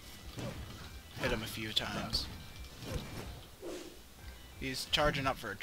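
A sword whooshes and clangs in quick swings.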